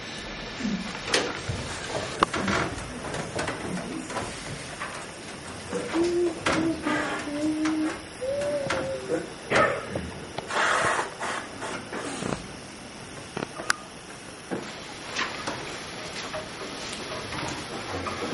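Acoustic guitars are plucked and strummed.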